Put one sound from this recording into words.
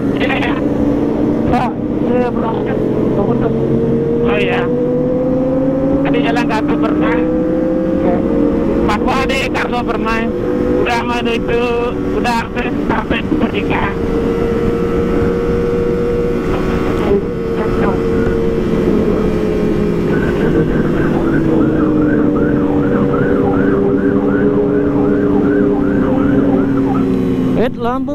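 A motorcycle engine hums steadily up close, rising and falling in pitch as it speeds up and slows.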